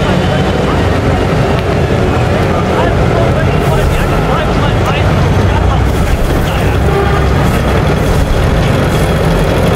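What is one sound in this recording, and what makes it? A crowd murmurs in a busy street.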